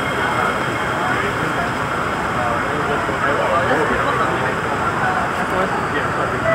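A train's wheels rumble on the track.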